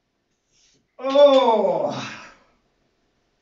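A man grunts loudly with effort.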